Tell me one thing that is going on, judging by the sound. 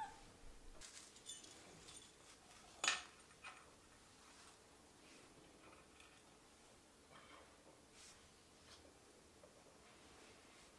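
Small ornaments clink and rattle as a hand handles them.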